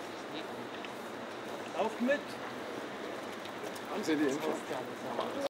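Footsteps scuff on wet pavement.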